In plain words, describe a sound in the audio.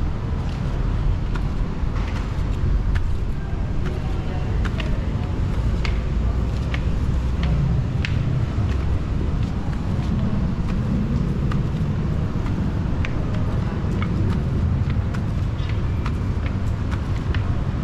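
Footsteps clatter on metal stairs.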